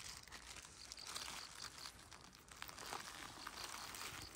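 Tall grass rustles close by.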